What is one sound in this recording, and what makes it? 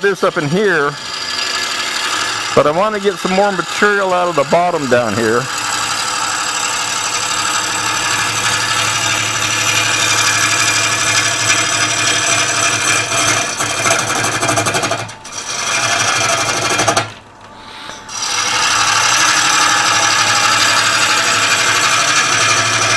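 A chisel scrapes and shaves spinning wood with a rough hiss, pausing briefly now and then.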